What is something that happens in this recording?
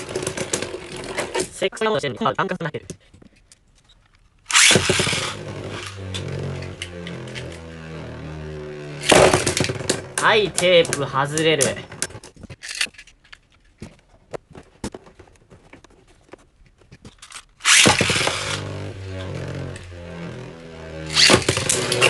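Spinning tops clack and knock against each other.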